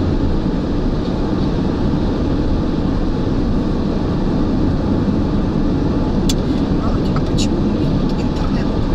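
Tyres roar steadily on a highway.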